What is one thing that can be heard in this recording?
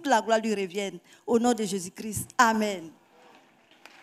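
An elderly woman speaks with emotion into a microphone.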